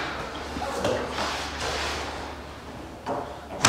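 A vinyl plank scrapes as it slides across the floor.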